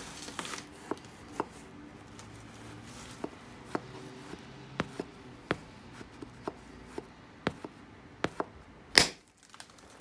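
An antler tool knocks against a stone with sharp clicks.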